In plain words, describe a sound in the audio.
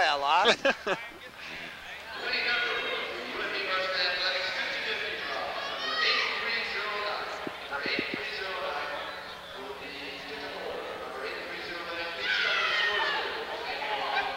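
A crowd of spectators chatters and calls out in a large echoing hall.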